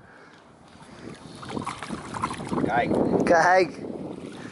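Water splashes as a fish is released from a net.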